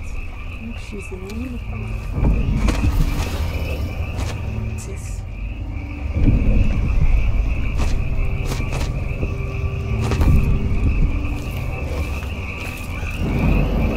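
Dry stalks rustle as hands push through them.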